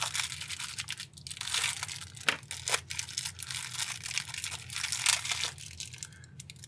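Plastic wrapping crinkles and rustles as hands open it.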